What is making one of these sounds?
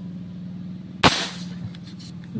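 A spear gun fires with a sharp snap.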